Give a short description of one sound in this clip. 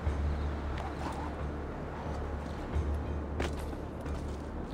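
Hands scrape and grip stone.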